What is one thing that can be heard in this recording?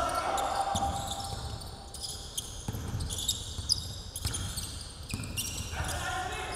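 Sneakers squeak sharply on a hardwood floor in an echoing gym.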